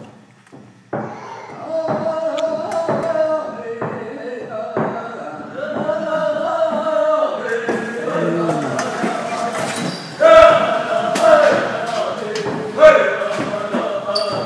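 An elderly man sings loudly in a chanting voice.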